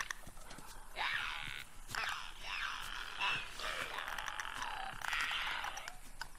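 Creatures screech and gurgle.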